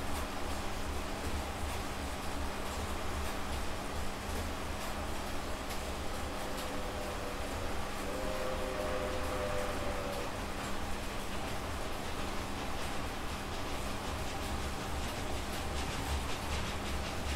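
An exercise bike trainer whirs steadily with a low hum.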